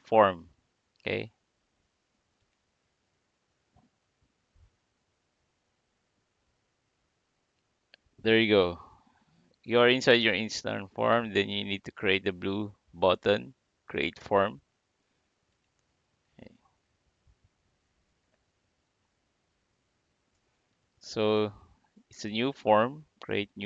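A man talks calmly, close to a microphone, in short bursts with pauses.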